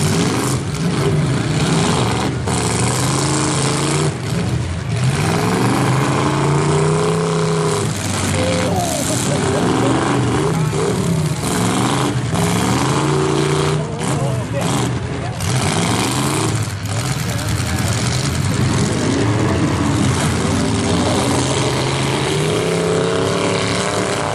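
Engines rumble and rev loudly close by.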